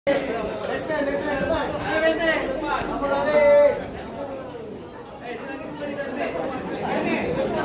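A group of men chant or sing together nearby.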